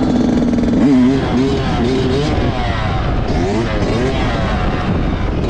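A dirt bike engine revs loudly up and down close by.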